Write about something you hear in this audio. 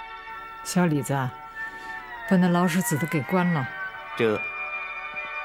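A man speaks calmly from across a room.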